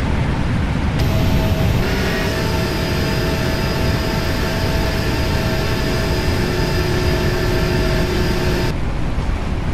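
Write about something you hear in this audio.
A jet engine whines with a high steady hum.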